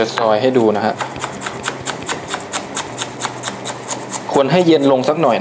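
A chef's knife chops on a wooden board.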